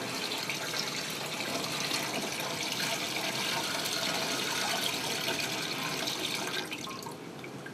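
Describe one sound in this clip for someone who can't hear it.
Liquid pours from a bucket and splashes into a metal pan.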